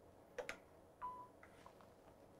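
A machine gives a short electronic beep.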